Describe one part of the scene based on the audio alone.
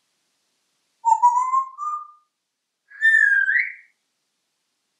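A parrot whistles in rising notes.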